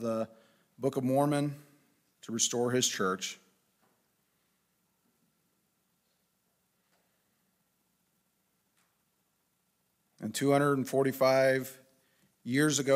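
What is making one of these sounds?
A man speaks calmly into a microphone, pausing at length between phrases.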